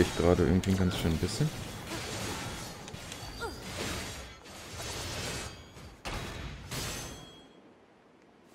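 Metal blades clash and scrape with loud ringing hits.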